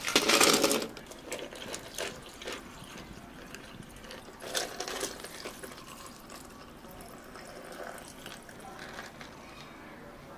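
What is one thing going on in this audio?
Milk pours into glasses of ice.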